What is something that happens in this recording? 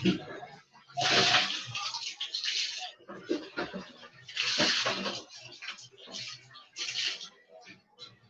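Water splashes onto a hard floor.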